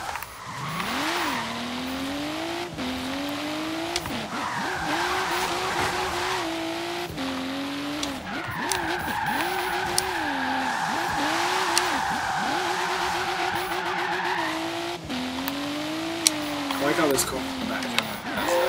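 A car engine revs up and down as gears shift.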